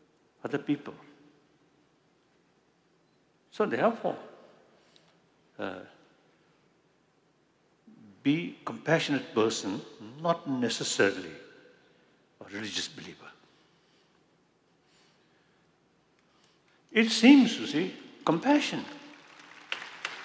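An elderly man speaks slowly through a microphone, in a large hall, with pauses between phrases.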